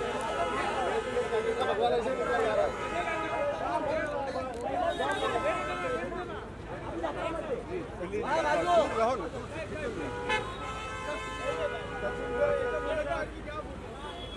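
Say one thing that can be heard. A crowd of men shout and call out excitedly close by.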